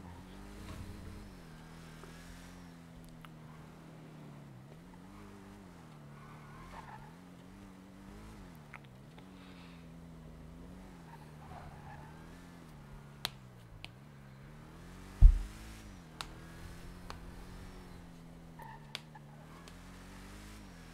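A car engine hums steadily, rising and falling in pitch as it speeds up and slows down.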